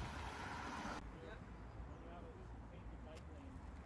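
A man speaks calmly to a group outdoors.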